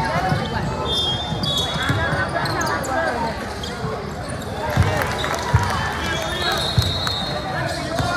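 Basketball shoes squeak sharply on a hardwood floor.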